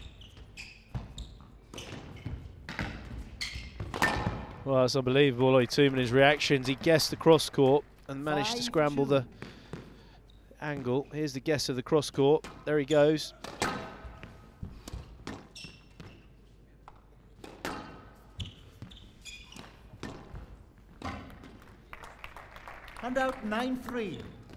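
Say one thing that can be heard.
A squash ball is struck by rackets and smacks against the walls with sharp echoing pops.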